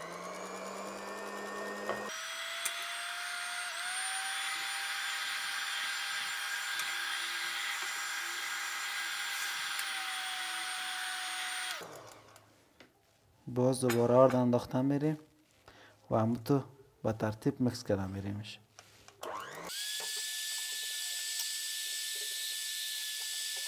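An electric hand mixer whirs steadily.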